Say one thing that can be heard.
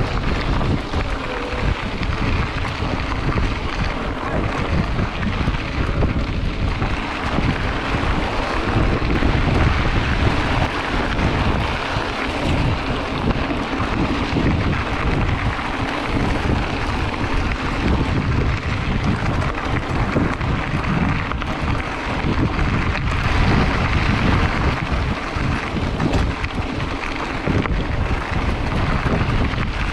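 Bicycle tyres crunch and rattle over a dirt track.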